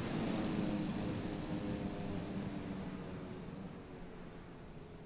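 A propeller plane's engine drones loudly and fades into the distance.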